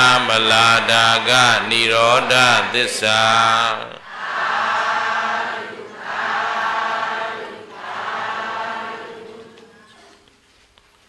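A man chants steadily into a microphone, heard through a loudspeaker in a reverberant hall.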